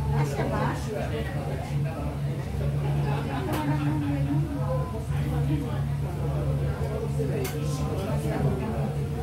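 A woman talks nearby in a calm voice.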